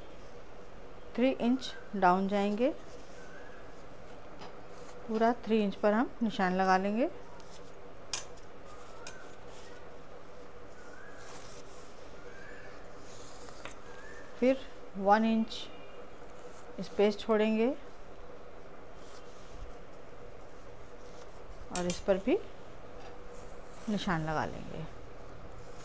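A metal ruler slides and taps softly on quilted cloth.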